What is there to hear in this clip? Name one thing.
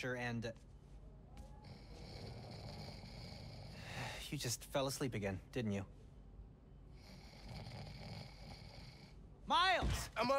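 A young man snores softly.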